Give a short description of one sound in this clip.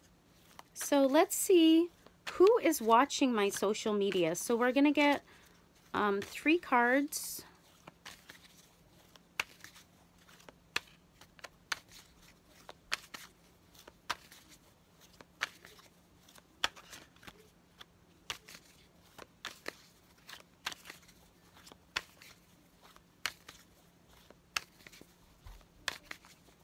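Playing cards riffle and tap softly as they are shuffled by hand.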